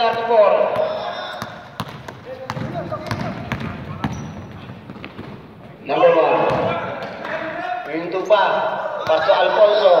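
A basketball is dribbled on a gym floor.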